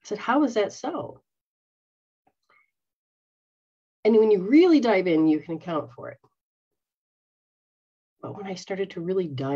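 A middle-aged woman speaks animatedly into a microphone, in short bursts with pauses.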